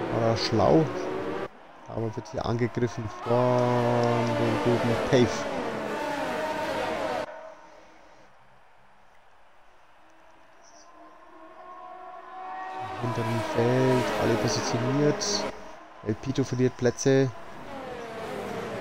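Racing car engines whine loudly, rising and dropping in pitch as they speed up and shift gears.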